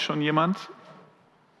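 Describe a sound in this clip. A man speaks briefly and loudly through a microphone in a large hall.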